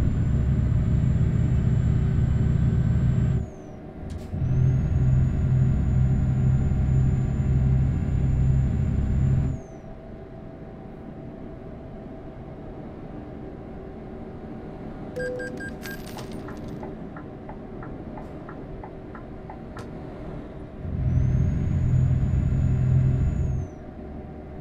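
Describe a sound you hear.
A truck engine roars loudly in bursts as it speeds up.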